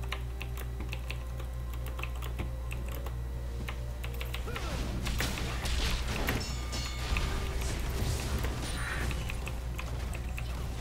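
Game sound effects chime and zap.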